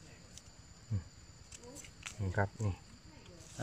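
A knife slices through a soft mushroom.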